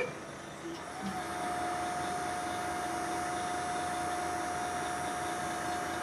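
A hydraulic motor hums steadily.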